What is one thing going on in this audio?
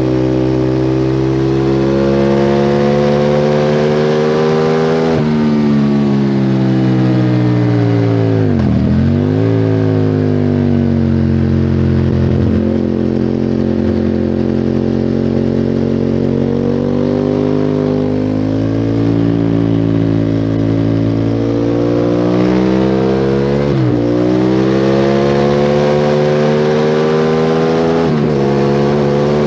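A motorcycle engine roars loudly at high revs, rising and dropping in pitch as it shifts gears.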